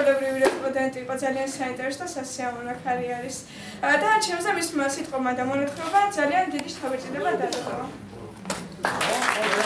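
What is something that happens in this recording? A young woman sings nearby.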